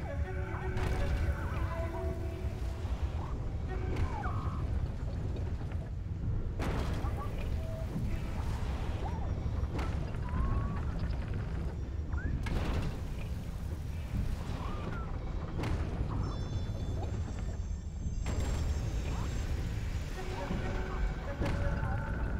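Wind roars steadily outdoors.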